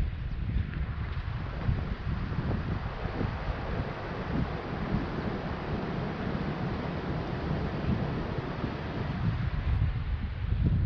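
River water rushes over a low weir.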